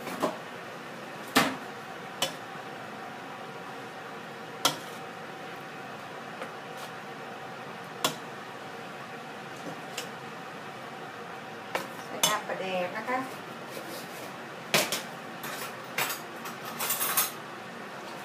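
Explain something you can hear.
A metal ladle clinks against the side of a pot.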